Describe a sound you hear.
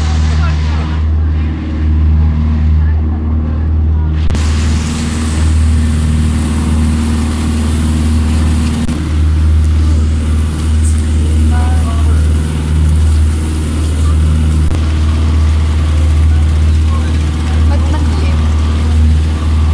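Water splashes against the hull of a moving boat.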